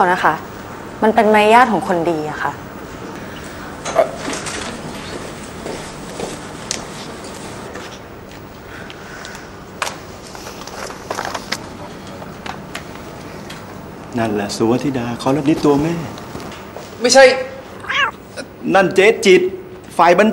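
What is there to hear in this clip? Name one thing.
A young man answers calmly up close.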